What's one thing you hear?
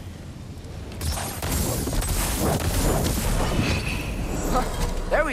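Magical blasts crackle and boom.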